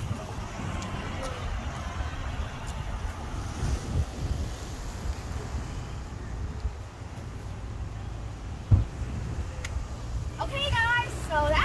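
Footsteps crunch on dry leaves and twigs.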